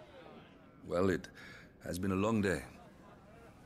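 A man speaks warmly and calmly, close by.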